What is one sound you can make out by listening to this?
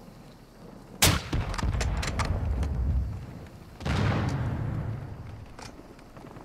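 Explosions boom in the distance and rumble away.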